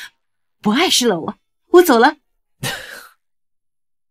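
A middle-aged woman speaks cheerfully, close by.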